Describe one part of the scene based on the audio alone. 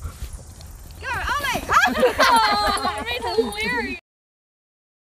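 A dog yelps and whines excitedly close by.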